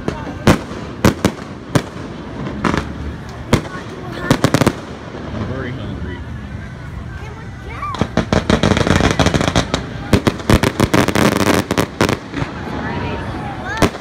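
Fireworks bang and crackle loudly in rapid bursts.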